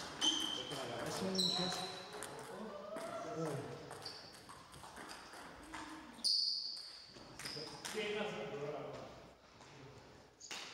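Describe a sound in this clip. A table tennis ball clicks back and forth off paddles and tables.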